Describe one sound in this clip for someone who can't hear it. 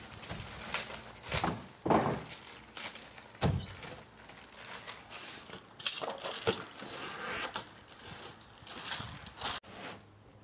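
Roofing felt rustles as it is unrolled.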